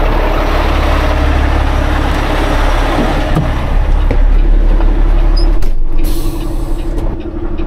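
A truck's diesel engine idles with a deep, steady rumble.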